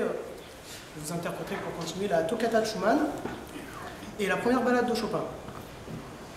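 A young man speaks calmly to an audience in an echoing hall.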